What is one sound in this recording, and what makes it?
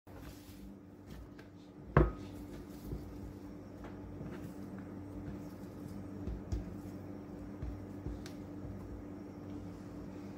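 Apple slices drop and rattle into a bowl.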